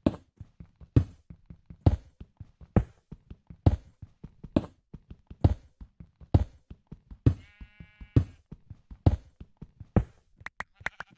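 Footsteps thud steadily on stone.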